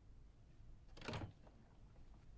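A door swings open with a soft whoosh.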